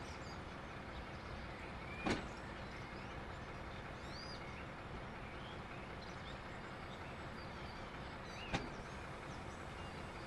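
Freight wagons roll slowly on the rails.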